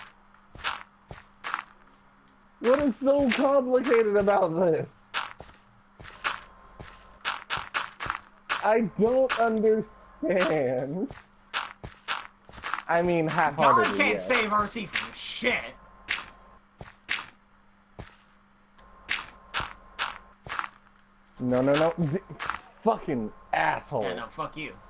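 Blocks of earth are placed with quick soft thuds, again and again.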